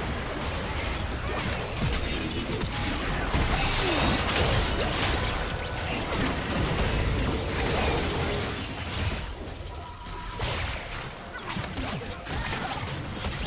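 Magic spells and gunfire effects crash and burst in a fantasy video game battle.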